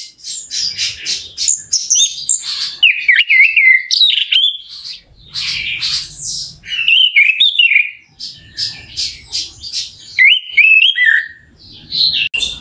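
A small bird sings loud, varied whistling and chattering phrases close by.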